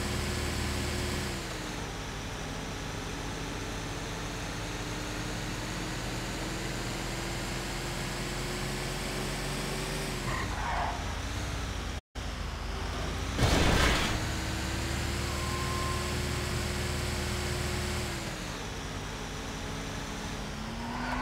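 A heavy truck engine drones steadily, its pitch shifting as it speeds up and slows down.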